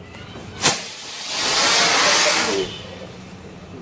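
A firework fountain hisses and crackles.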